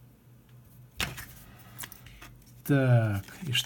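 Scissors snip through thin plastic.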